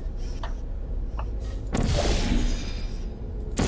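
A portal gun fires with a sharp electric zap.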